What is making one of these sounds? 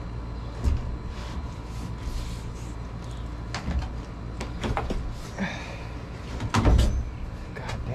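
A sliding window rattles and knocks in its frame.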